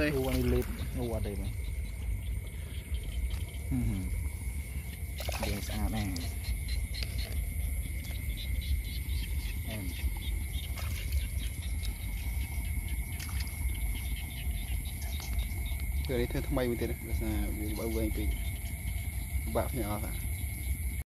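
A frog croaks in short bursts close by.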